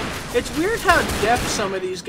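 Pistol shots ring out close by.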